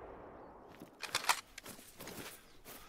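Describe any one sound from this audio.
A rifle bolt clicks as it is worked.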